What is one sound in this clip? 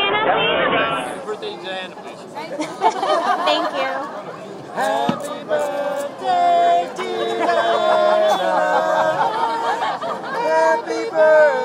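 A second young man laughs and talks loudly close by.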